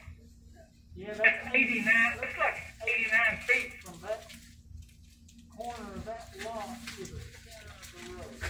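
An elderly man speaks calmly through a microphone, slightly muffled.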